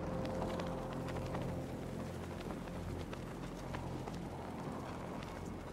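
A cape flaps in the wind.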